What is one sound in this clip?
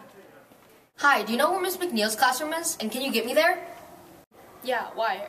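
A young girl speaks calmly, close by.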